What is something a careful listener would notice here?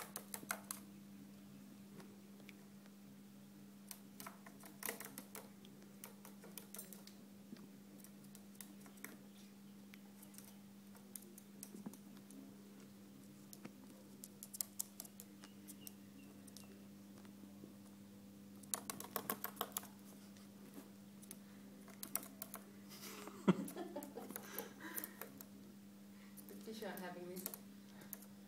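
An aquarium filter hums steadily.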